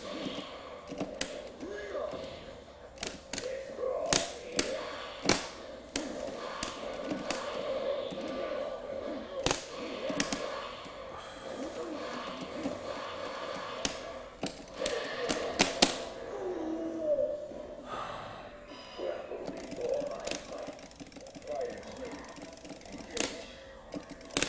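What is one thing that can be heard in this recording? Arcade buttons click and clatter under quick presses.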